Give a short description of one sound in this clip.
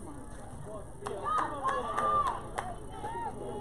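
A crowd of young women cheers loudly.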